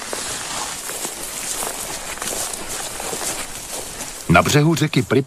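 Boots crunch on dry grass.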